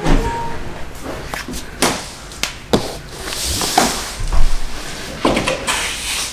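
Hands slide and thump a large cardboard box.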